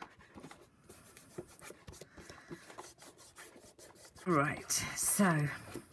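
Hands rub and press on card, with a soft scuffing.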